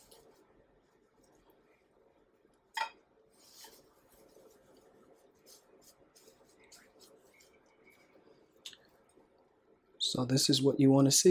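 A gloved hand rustles and crunches through dry breadcrumbs.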